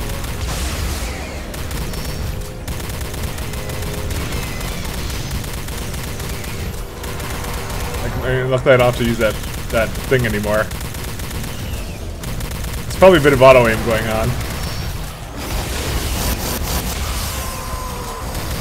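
Weapons fire rapidly with blasts and bangs.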